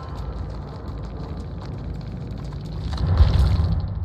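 Footsteps run through tall grass.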